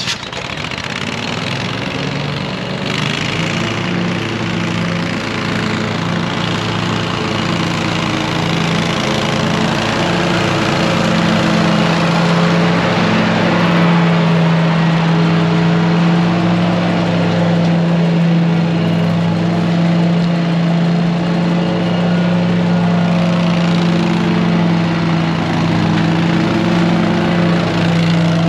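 A ride-on lawn mower engine drones steadily, growing louder as it comes closer.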